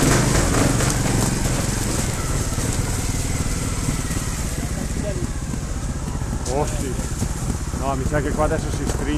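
A motorcycle engine putters and revs close by.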